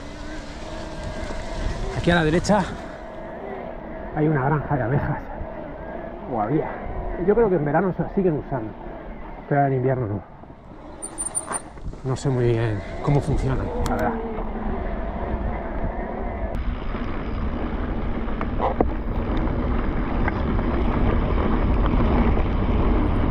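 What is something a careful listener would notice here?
Bicycle tyres roll and crunch over a dirt track.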